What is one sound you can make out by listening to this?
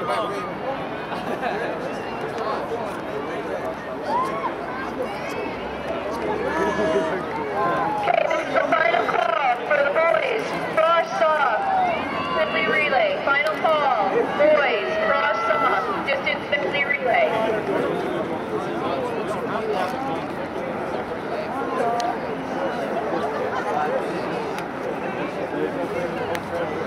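A crowd of spectators cheers and shouts outdoors, growing louder for a while before easing off.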